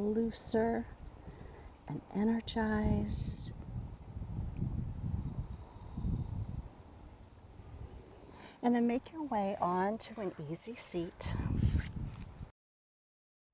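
A woman speaks calmly and slowly, giving gentle instructions.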